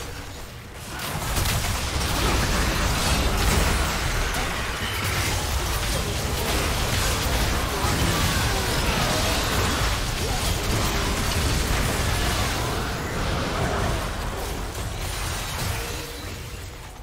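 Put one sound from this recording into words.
Game spell effects and attacks crackle and boom in a busy fight.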